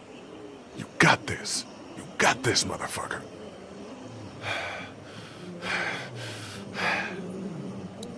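A man mutters nervously to himself.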